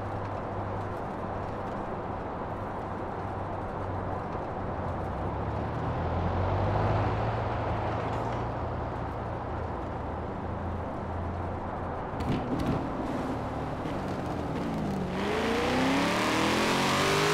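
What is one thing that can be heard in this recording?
Tyres roll on tarmac.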